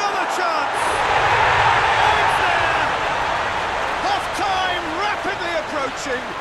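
A large stadium crowd bursts into loud cheering.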